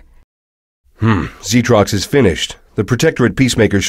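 A man speaks steadily, close by.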